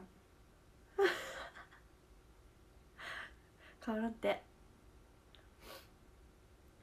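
A young woman breathes out in short giggles close by.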